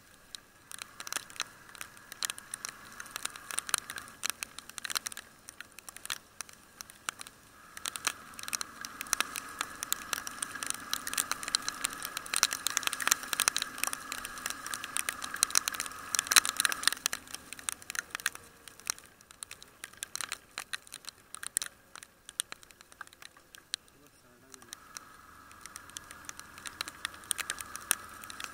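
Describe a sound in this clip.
Raindrops patter and tap on a helmet close by.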